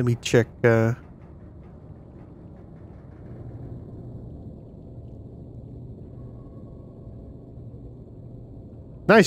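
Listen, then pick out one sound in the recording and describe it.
A submarine engine hums low and steady underwater.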